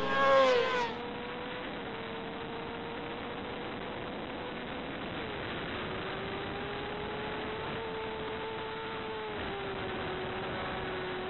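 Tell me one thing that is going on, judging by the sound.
A motorcycle engine hums steadily and muffled.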